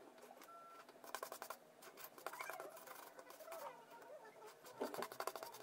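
A stiff brush scrubs over a circuit board.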